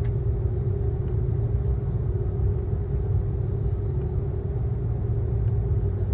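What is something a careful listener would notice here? Jet engines roar steadily, heard from inside an airliner cabin.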